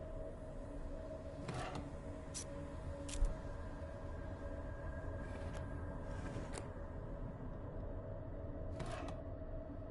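A wooden drawer slides open and shut with soft knocks.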